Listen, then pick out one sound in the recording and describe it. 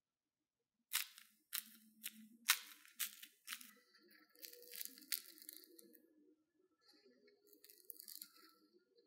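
A crispy fried snack crackles as fingers squeeze and break it apart.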